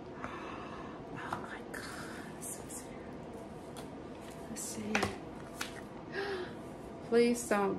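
An elderly woman reads aloud calmly and close by.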